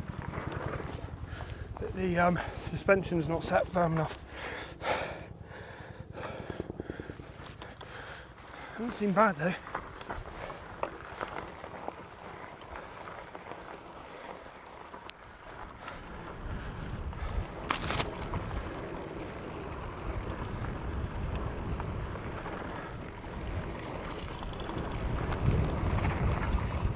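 Bicycle tyres roll over a dry dirt trail.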